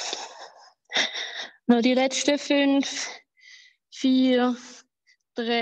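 A woman talks through an online call, breathless and animated.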